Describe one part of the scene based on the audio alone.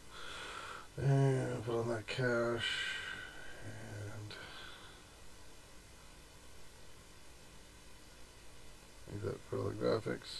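A man speaks casually into a microphone close by.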